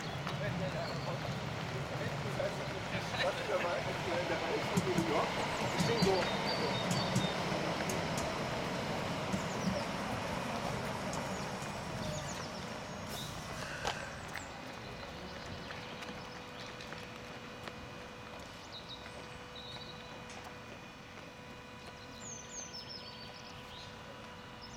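Runners' footsteps patter on pavement.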